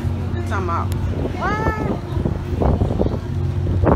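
A crowd of adults chatters nearby outdoors.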